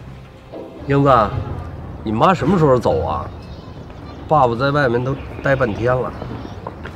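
A middle-aged man speaks calmly outdoors.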